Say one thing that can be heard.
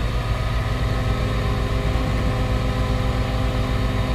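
Earth slides out of a tipping truck bed.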